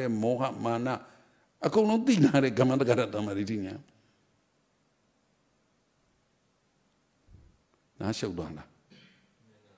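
An elderly man speaks calmly into a microphone, close by, in short phrases with pauses.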